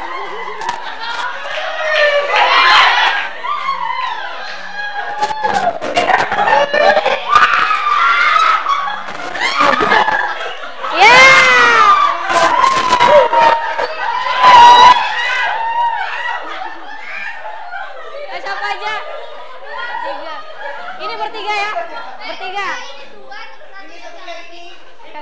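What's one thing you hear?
Several young people talk and shout over each other with animation.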